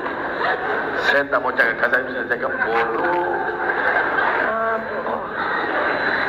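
A man speaks into a microphone over loudspeakers in a large echoing hall.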